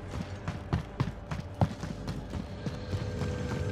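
Quick footsteps thud on hard stairs and floor.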